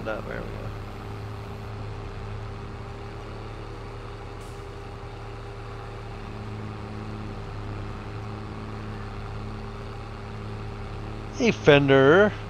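A harvester engine idles with a steady low hum.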